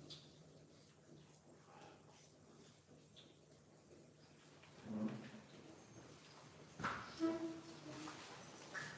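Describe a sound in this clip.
A man speaks through a microphone in a large echoing room.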